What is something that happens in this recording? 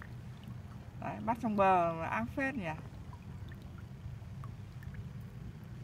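Water drips and splashes from a net onto a pond.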